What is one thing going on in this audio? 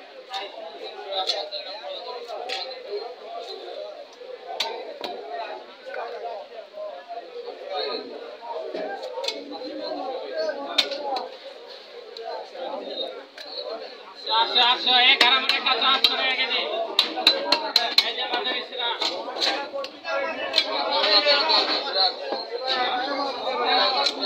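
A blade slices and scrapes through fish with wet, sticky sounds and sharp clicks.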